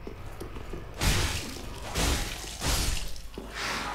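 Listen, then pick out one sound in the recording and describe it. A sword slashes and strikes a body with heavy thuds.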